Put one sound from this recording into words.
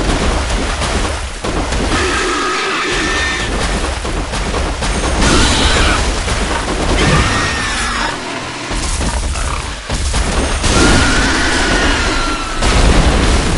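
A huge beast snorts and squeals loudly.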